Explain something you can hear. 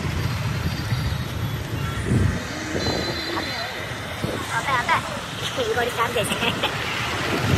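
Traffic drones steadily along a street outdoors.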